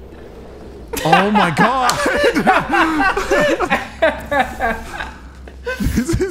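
A man laughs loudly and talks with animation close to a microphone.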